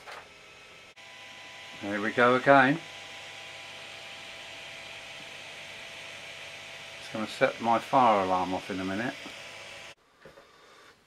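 A laser engraver runs with a steady whirring hum.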